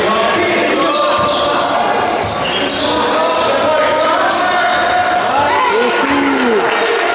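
Basketball players' sneakers squeak on a hardwood court.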